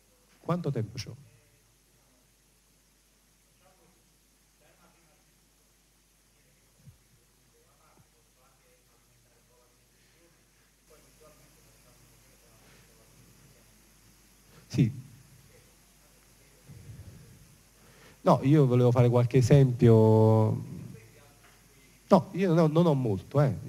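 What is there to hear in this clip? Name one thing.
A man speaks into a microphone, heard through a loudspeaker in a large room.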